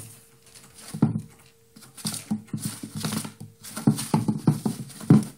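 A small animal scrabbles and shuffles inside a hollow plastic tube.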